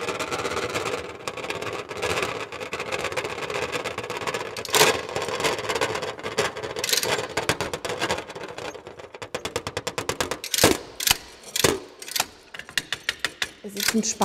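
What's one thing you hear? A mechanical instrument clicks and rattles.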